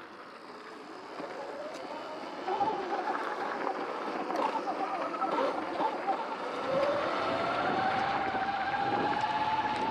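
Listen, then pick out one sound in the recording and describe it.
Tyres crunch on gravel.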